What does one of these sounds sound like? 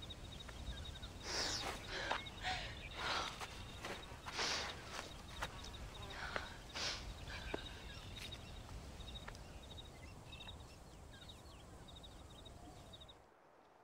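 A woman sobs and cries close by.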